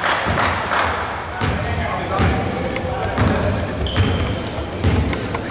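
Footsteps thud and patter on a wooden floor in a large echoing hall.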